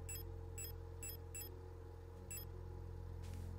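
Short, high electronic beeps sound in quick succession as a menu selection changes.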